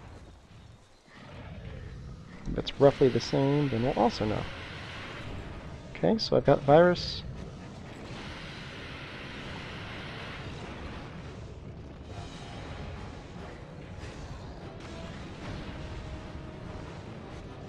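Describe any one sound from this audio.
A large beast growls and stomps nearby.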